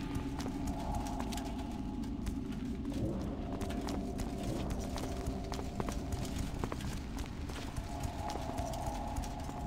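Footsteps clatter steadily on a stone floor.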